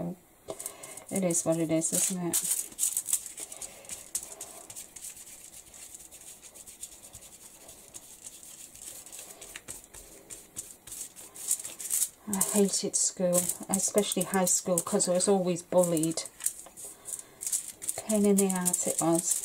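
A stiff brush scratches and dabs against paper.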